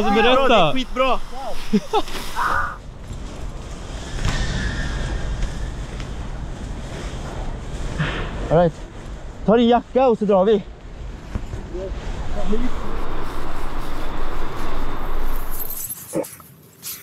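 Wind rumbles over the microphone outdoors.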